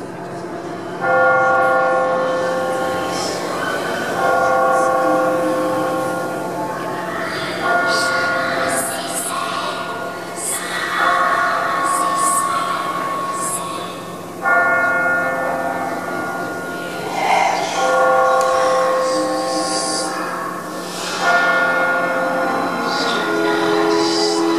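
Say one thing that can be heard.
Orchestral music plays loudly through outdoor loudspeakers, swelling in bursts.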